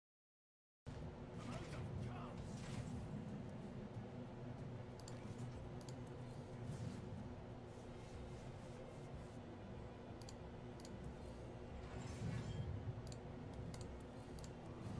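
Game sound effects chime and whoosh as cards are played.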